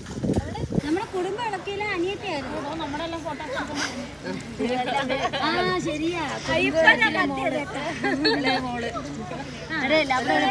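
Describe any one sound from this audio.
Several women chat with each other nearby.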